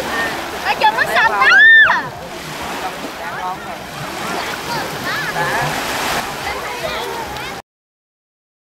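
Young children chatter and call out in high voices.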